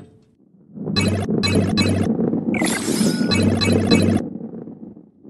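Coins chime quickly in a row as they are picked up.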